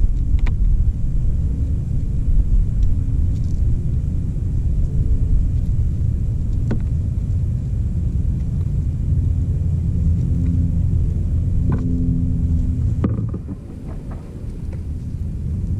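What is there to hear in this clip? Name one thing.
Wind blows across the microphone outdoors with a low rumble.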